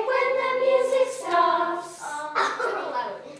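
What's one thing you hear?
A woman sings with a group of young children.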